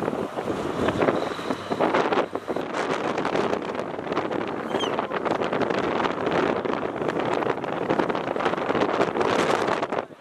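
Traffic rushes past on a nearby highway.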